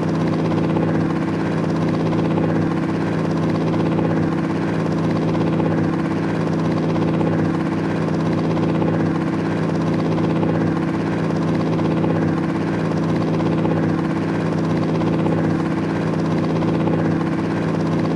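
A helicopter engine drones steadily with whirring rotor blades.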